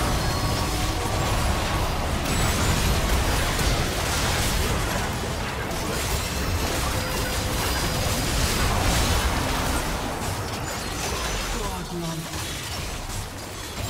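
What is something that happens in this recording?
Game spell effects and attacks crackle and boom in a dense battle.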